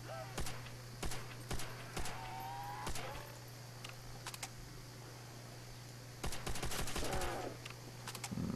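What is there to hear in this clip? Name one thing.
A rifle fires in quick bursts of sharp shots.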